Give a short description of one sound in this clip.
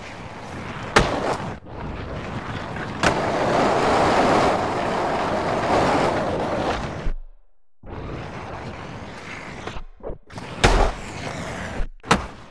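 A skateboard clacks hard as it lands on concrete.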